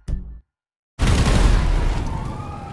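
A burst of flames whooshes and crackles.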